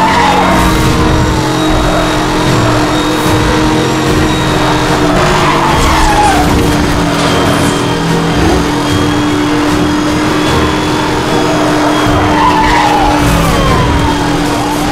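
A sports car's engine roars steadily at high speed.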